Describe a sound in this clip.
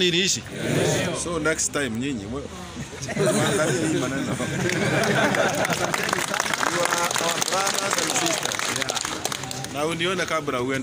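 A large outdoor crowd of men and women shouts and chants loudly together.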